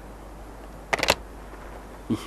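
A phone handset clatters down onto its cradle.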